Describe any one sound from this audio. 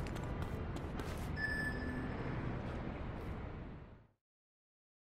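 Footsteps scuff on hard ground.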